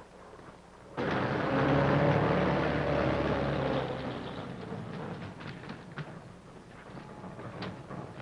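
An armoured truck's engine rumbles as it backs up.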